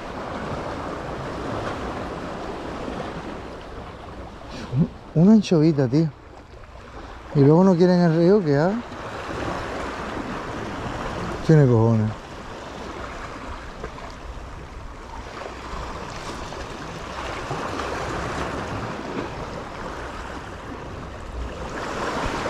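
A fishing reel whirs steadily as its handle is cranked.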